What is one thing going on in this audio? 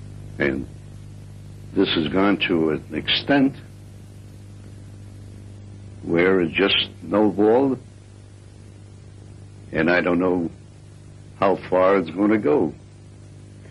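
An elderly man speaks calmly and slowly, pausing between phrases.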